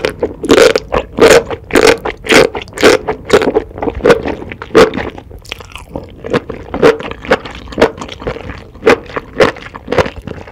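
A woman chews and smacks sticky food close to a microphone.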